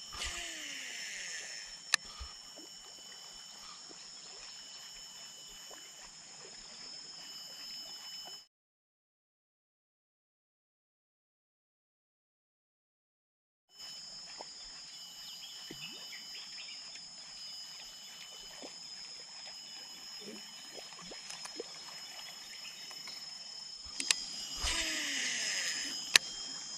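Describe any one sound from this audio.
A fishing reel whirs as line pays out in a cast.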